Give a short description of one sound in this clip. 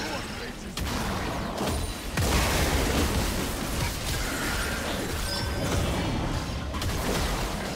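Weapons clash and strike in a video game fight.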